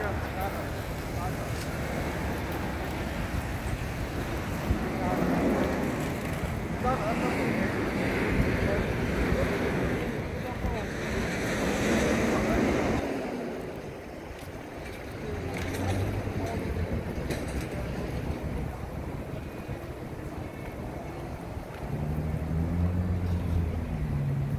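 Steady city traffic hums outdoors in the open air.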